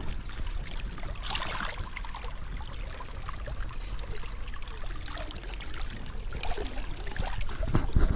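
Water splashes as a hand stirs it.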